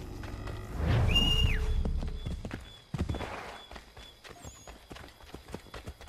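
Footsteps thud on soft ground.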